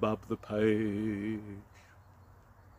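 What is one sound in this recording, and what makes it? An elderly man speaks expressively close to the microphone.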